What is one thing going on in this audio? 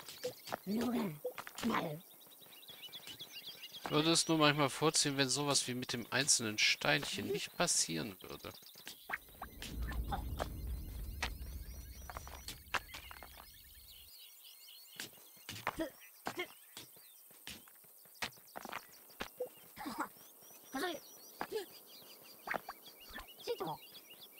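Small picks tap and chip at stone in quick, scattered clicks.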